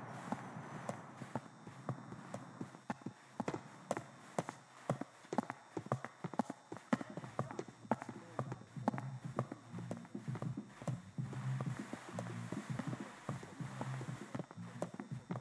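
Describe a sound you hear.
Footsteps clatter up hard stairs indoors.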